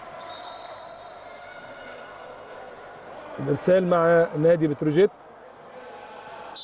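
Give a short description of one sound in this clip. Players' voices murmur faintly in a large echoing hall.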